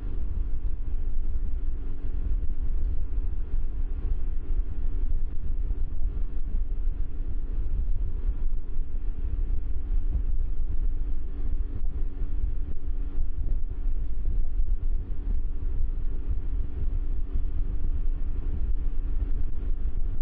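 A motorcycle engine hums steadily at highway speed.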